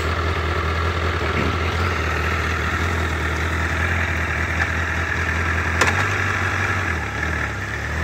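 A four-cylinder sport bike revs in place.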